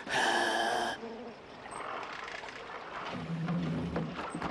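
Water laps gently against a rocky shore.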